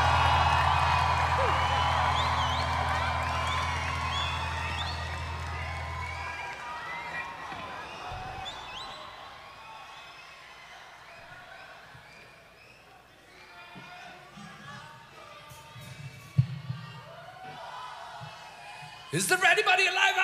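A large crowd cheers and whistles loudly, then slowly fades.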